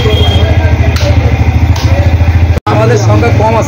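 A cleaver chops meat on a wooden block with sharp thuds.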